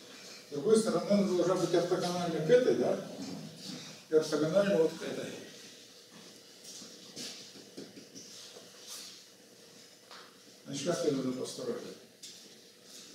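An elderly man lectures in a slightly echoing room, pausing between phrases.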